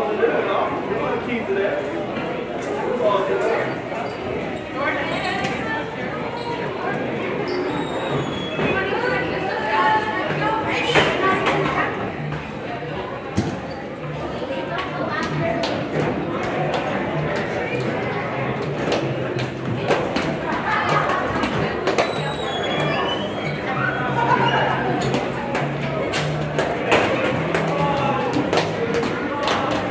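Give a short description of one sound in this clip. Basketballs bounce on a wooden court.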